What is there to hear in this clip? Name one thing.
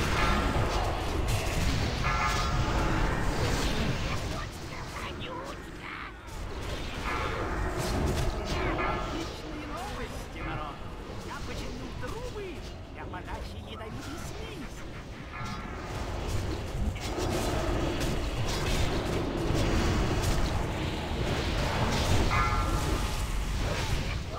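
Spell effects and weapon hits crackle and clash in a game battle.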